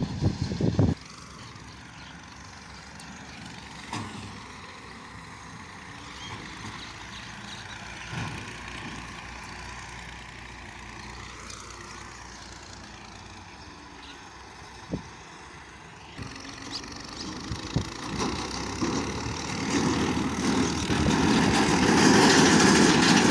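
A tractor engine rumbles in the distance.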